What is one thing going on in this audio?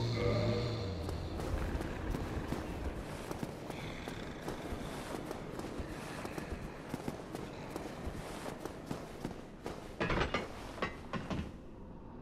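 Armoured footsteps clank quickly on stone.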